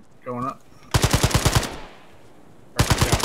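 A rifle fires rapid bursts of shots, echoing loudly.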